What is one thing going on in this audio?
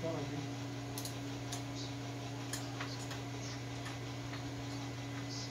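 A ratchet wrench clicks in short bursts close by.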